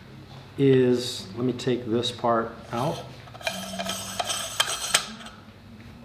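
Lens parts click and scrape as they are handled.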